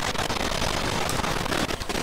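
Gunfire and an explosion burst loudly.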